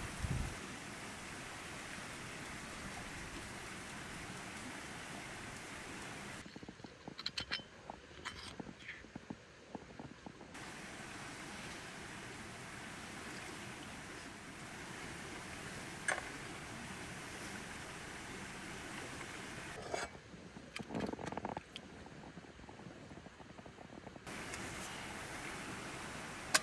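Eggs sizzle as they fry in a small cast-iron skillet.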